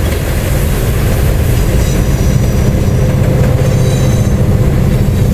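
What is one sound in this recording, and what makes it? A diesel locomotive engine drones louder as it passes close by.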